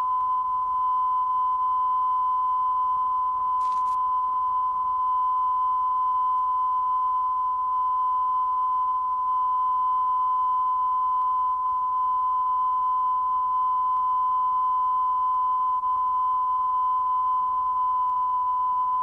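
A steady, high-pitched test tone sounds without a break.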